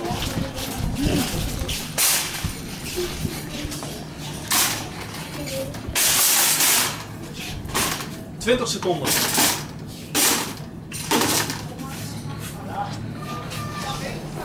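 A shopping trolley rattles as it rolls along a hard floor.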